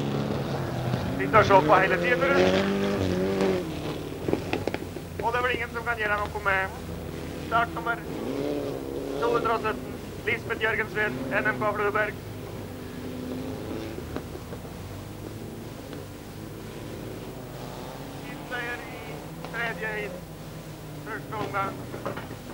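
A rally car engine roars along a dirt track.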